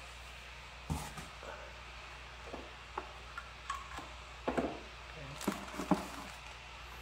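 A cable rustles and knocks against a table.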